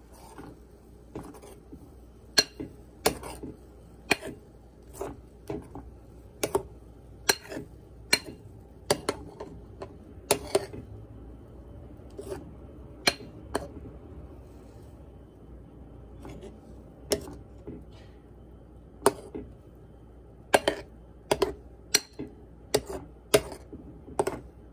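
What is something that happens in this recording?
A spoon stirs thick batter in a bowl, squelching and tapping against the side.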